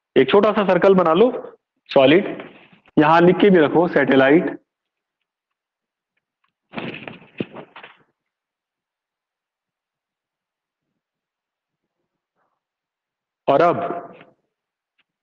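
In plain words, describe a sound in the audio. A middle-aged man speaks calmly and clearly in short bursts, close to the microphone.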